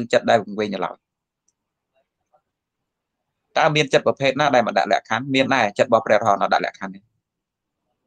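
A man speaks calmly and steadily, close to a microphone.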